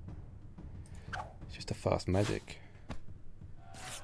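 Game cards swish and snap into place.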